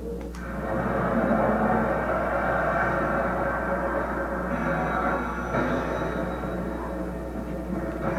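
Blades strike with sharp clanging impacts.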